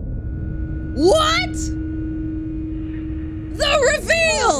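A young woman exclaims loudly and excitedly into a microphone, close by.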